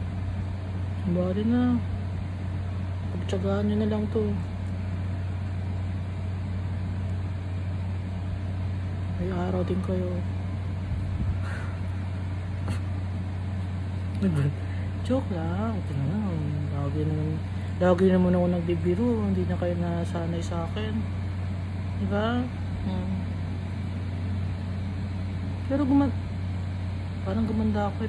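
A middle-aged woman speaks calmly and close by, in short bursts with pauses.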